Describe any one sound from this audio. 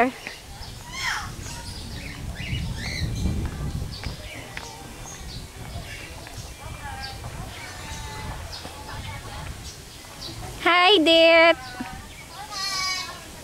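Birds chirp and whistle nearby.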